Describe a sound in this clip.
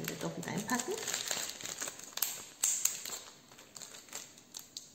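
Plastic packaging crinkles in a woman's hands.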